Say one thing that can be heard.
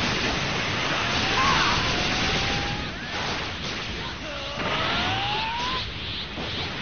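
Whooshing effects sweep up and down in pitch.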